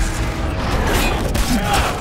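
Swords clash.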